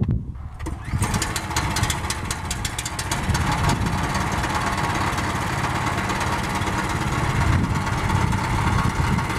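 A sawmill engine runs with a steady roar.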